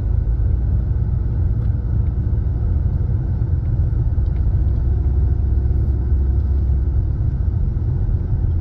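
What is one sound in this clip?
A car engine hums steadily with a low rumble while driving.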